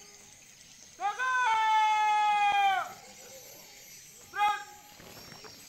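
A man shouts drawn-out commands loudly outdoors.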